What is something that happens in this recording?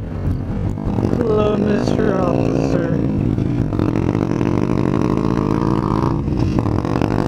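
A nearby motorcycle engine revs up and pulls away.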